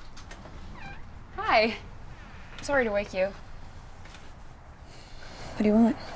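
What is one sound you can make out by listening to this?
A young woman speaks nearby in a worried voice.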